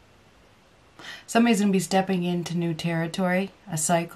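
A middle-aged woman speaks calmly and close to a microphone.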